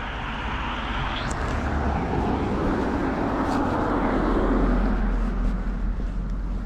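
A car drives past close by with a rising and fading whoosh.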